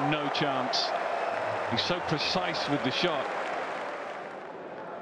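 A crowd claps and cheers in a large open stadium.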